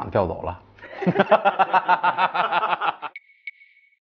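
A young man laughs loudly and heartily close to a microphone.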